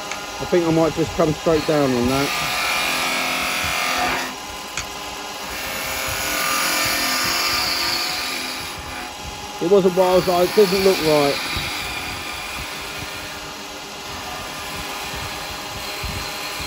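A chisel shaves spinning wood with a rising and falling hiss.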